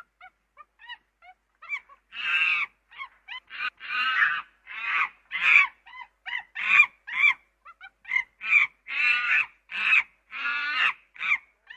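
A chimpanzee pant-hoots, starting with soft rising hoots that build into loud, rapid screams.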